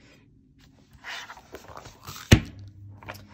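Stiff planner pages rustle and flap as they are turned.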